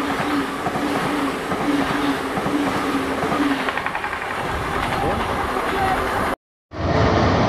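A train rushes past at speed with a loud roar.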